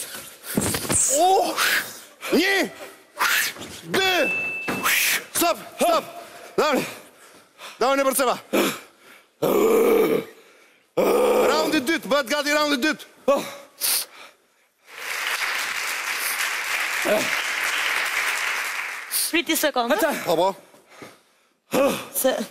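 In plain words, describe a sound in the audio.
Men shout and talk with animation.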